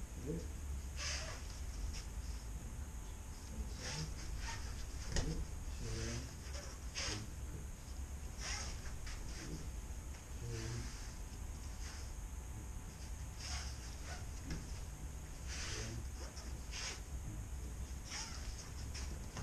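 Bodies thud onto a padded mat as people are thrown.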